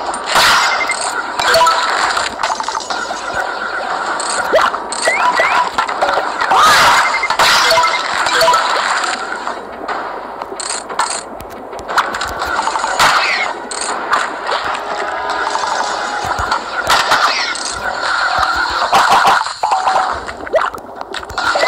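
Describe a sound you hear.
Electronic zaps and coin chimes ring out repeatedly.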